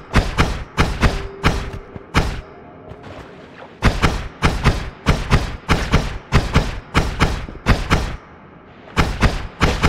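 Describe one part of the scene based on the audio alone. A weapon fires in quick repeated bursts.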